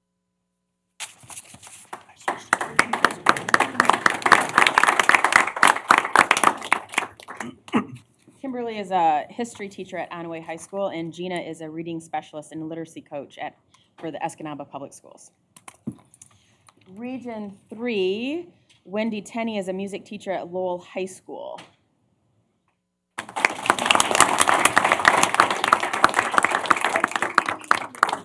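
A group of people applauds.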